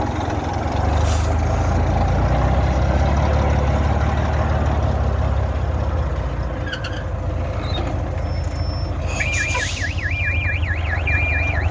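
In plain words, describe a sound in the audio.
An old diesel truck pulls away under load with a loaded trailer.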